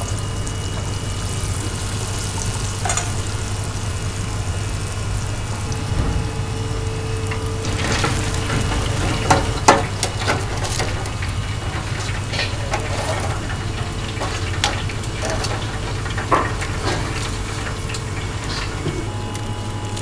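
Oil bubbles and sizzles steadily in a deep fryer.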